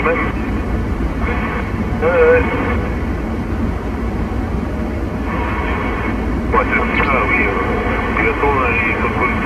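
Road noise rumbles inside a moving car.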